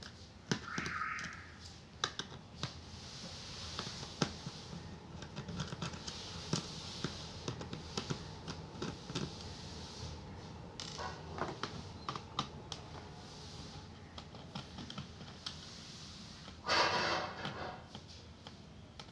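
A screwdriver clicks and scrapes against screws.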